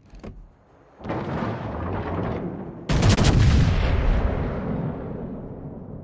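A battleship's heavy guns fire a broadside with deep booms that rumble away.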